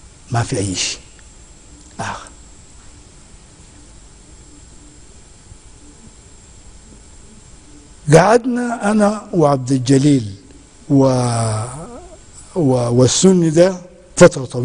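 An elderly man speaks calmly and with feeling into a close microphone, pausing between phrases.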